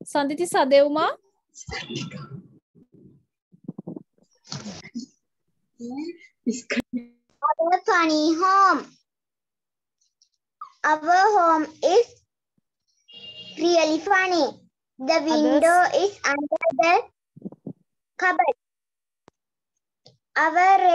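A child reads aloud slowly through an online call.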